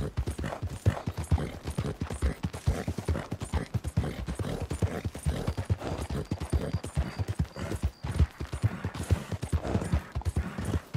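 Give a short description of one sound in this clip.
Horse hooves thud rapidly on a dirt path at a gallop.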